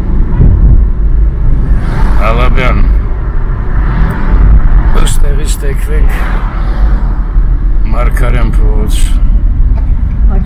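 A car engine hums and tyres rumble steadily on the road from inside the car.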